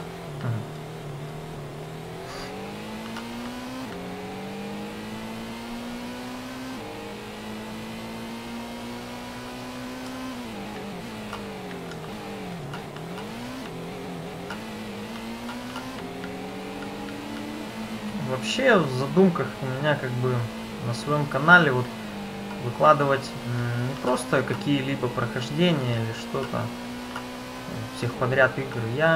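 A racing car engine revs up and down through the gears.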